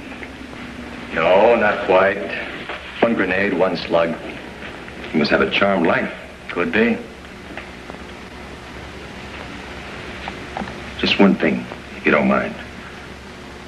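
A second man answers in a calm voice.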